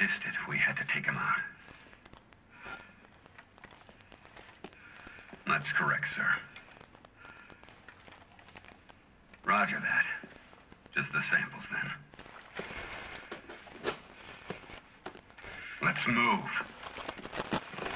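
A man speaks calmly and clearly over a radio.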